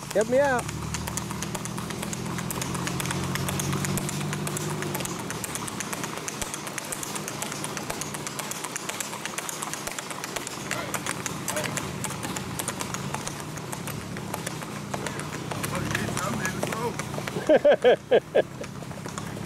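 A Tennessee Walking Horse clatters along on asphalt in a quick four-beat gait.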